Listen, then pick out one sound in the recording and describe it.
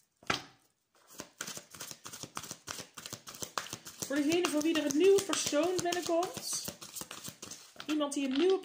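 Playing cards are shuffled with quick, soft flicks.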